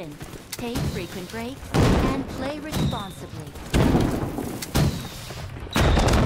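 Gunshots crack rapidly from a game.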